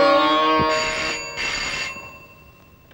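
A telephone rings loudly.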